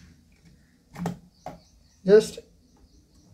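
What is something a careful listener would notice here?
Small plastic parts click and tap as they are handled.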